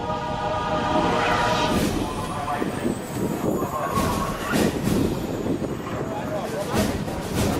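Strong wind buffets and rumbles outdoors.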